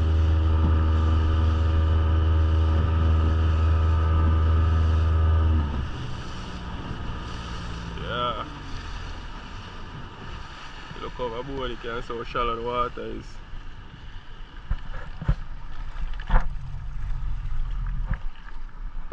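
A boat motor drones loudly and steadily, then drops to a quieter hum.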